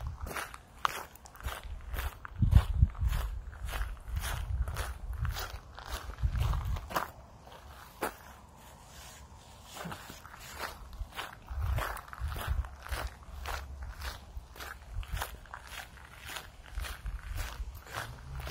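Wind blows outdoors and rustles the leaves of trees.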